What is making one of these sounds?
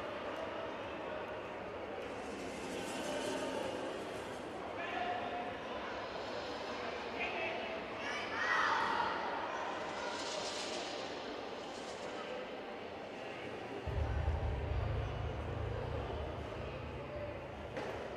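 A man calls out instructions loudly in a large echoing hall.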